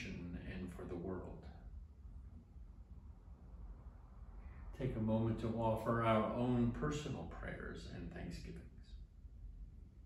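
An older man reads aloud calmly and close by.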